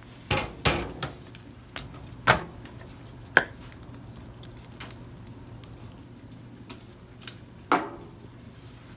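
Objects knock and clatter against a metal tray.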